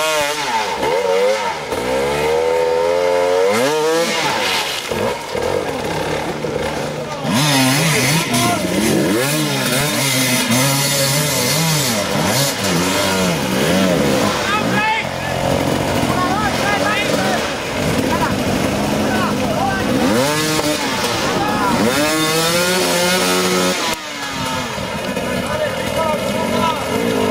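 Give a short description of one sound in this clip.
A dirt bike engine revs hard and whines up and down, close by.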